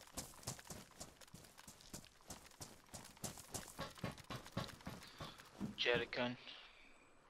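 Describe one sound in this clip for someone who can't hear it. Footsteps crunch quickly over gravel and metal.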